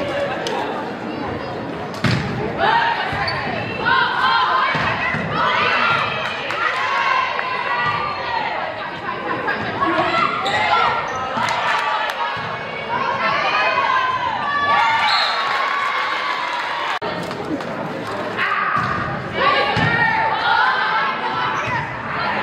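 Spectators cheer and shout in a large echoing hall.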